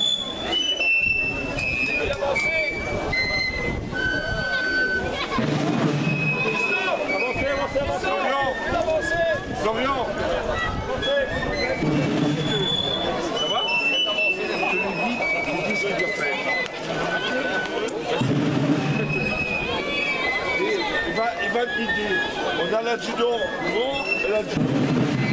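A band of fifes plays a lively marching tune outdoors.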